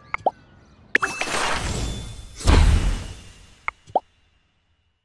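A magical sparkle sound swells and rings out.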